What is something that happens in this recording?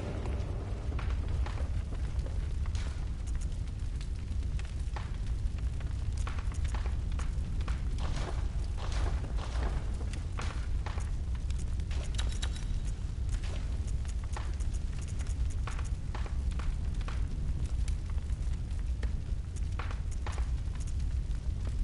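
Short soft clicks tick as menu choices change.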